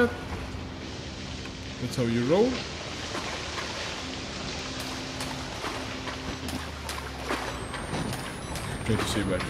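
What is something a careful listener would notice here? Water rushes and splashes steadily through an echoing tunnel.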